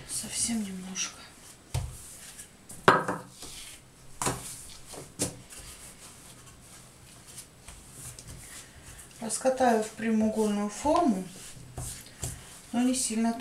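A wooden rolling pin knocks and rolls over dough on a table.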